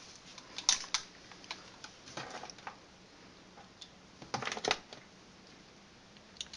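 Metal parts of a pistol click and rattle in someone's hands.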